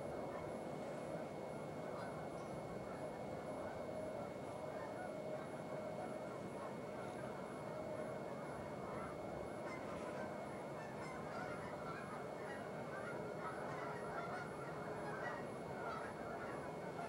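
Wind blows steadily across open ground.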